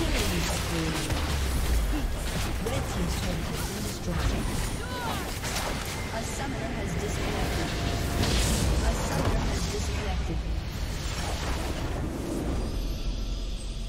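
Video game spells and blasts crash in a busy battle.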